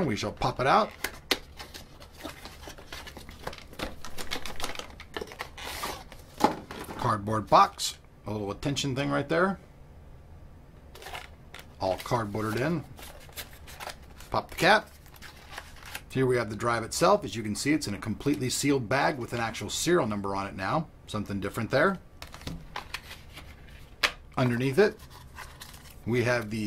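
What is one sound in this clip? Cardboard packaging scrapes and rustles as hands open a box.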